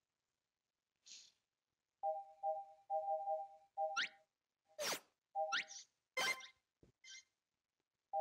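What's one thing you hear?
Game sound effects whoosh and pop.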